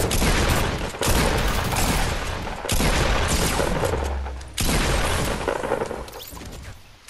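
Gunshots boom in quick bursts.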